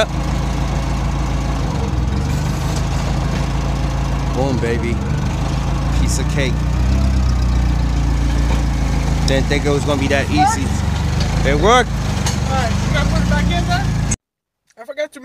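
A forklift engine rumbles steadily close by.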